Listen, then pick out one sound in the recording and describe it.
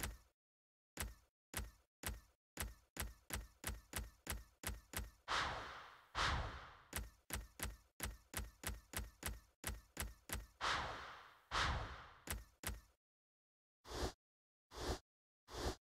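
Game menu clicks tick quickly in a steady rhythm.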